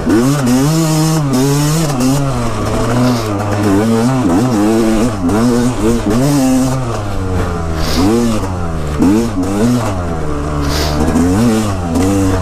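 A dirt bike engine revs up and down loudly close by.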